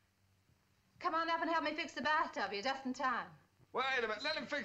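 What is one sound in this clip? A woman calls out loudly.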